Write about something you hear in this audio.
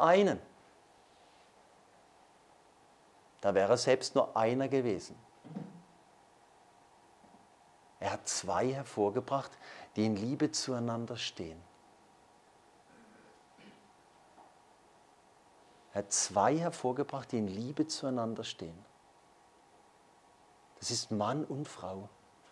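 A man speaks calmly and with emphasis, pausing between phrases.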